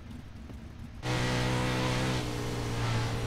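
A car engine idles with a steady low drone.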